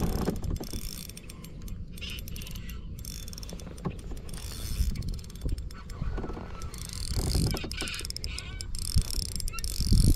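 A spinning reel is cranked, its gears whirring.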